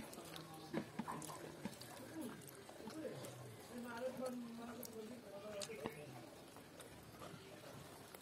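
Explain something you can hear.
A girl chews and smacks her lips close to a microphone.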